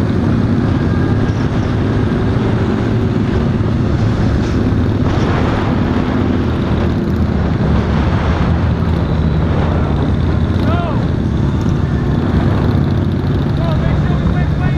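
A motorcycle engine rumbles steadily close by while riding.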